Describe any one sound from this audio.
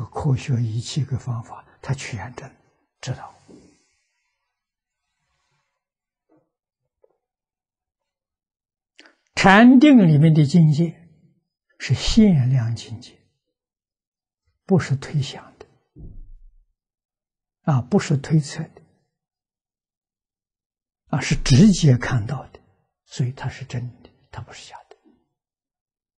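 An elderly man speaks calmly and slowly into a close microphone, pausing between phrases.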